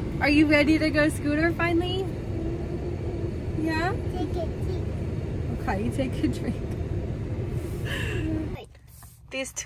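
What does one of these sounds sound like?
A young girl talks in a high voice close by.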